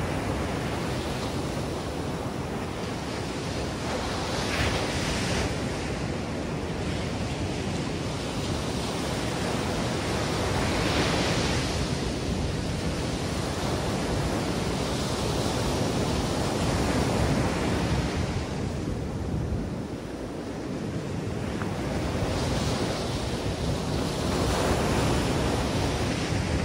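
Waves crash and wash up onto the shore.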